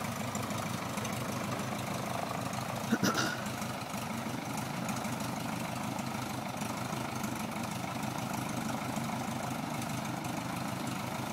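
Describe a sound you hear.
A small propeller plane's engine idles with a steady, throbbing drone close by.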